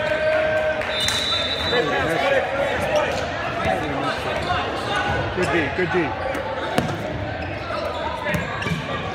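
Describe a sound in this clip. Players and spectators call out and chatter in a large echoing hall.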